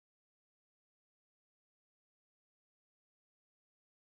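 A glass lid clinks onto a ceramic dish.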